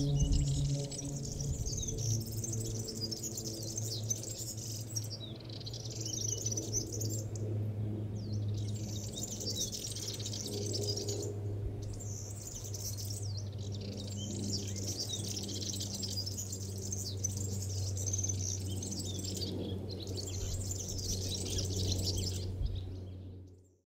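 A small bird sings a fast, scratchy warbling song in short bursts close by.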